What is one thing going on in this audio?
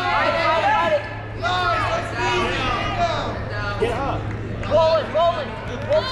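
Spectators and coaches shout loudly and excitedly in a large echoing hall.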